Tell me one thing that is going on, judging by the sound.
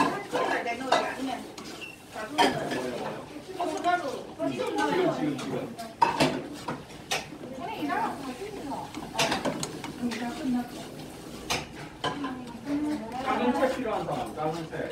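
A metal ladle clinks and scrapes against a pot.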